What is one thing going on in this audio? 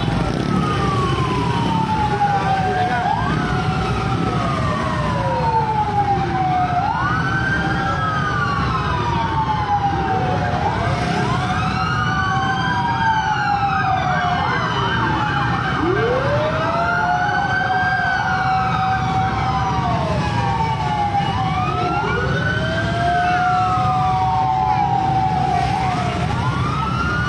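Several sirens wail and overlap, rising and falling throughout.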